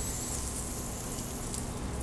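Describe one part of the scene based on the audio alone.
Pruning shears snip a stem.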